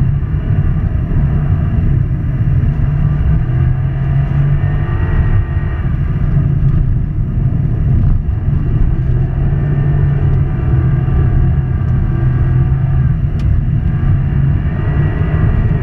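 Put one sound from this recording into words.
A turbocharged flat-four rally car engine roars at full throttle, heard from inside the car.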